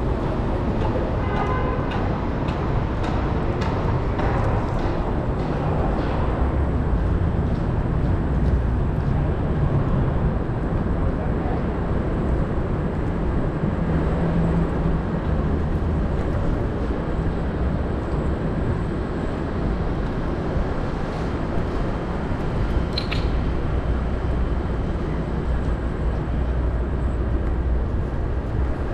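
Wind rushes loudly and steadily past while riding.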